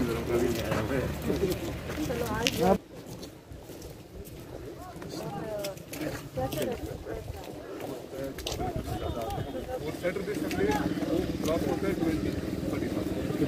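Footsteps scuff on a paved path.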